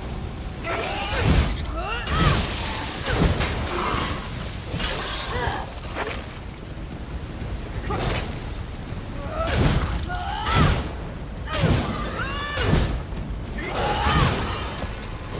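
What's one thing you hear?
Weapon blows strike a giant spider with heavy thuds.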